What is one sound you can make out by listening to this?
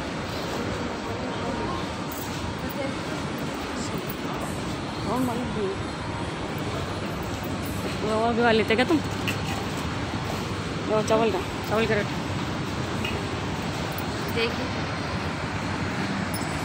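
Shoppers murmur faintly in the background of a large indoor space.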